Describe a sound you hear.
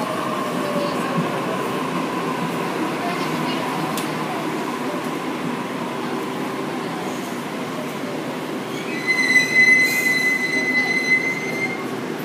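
A train hums steadily while standing at a platform.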